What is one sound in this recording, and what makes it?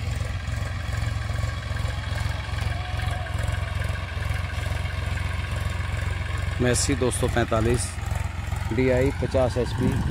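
A tractor engine rumbles steadily in the distance.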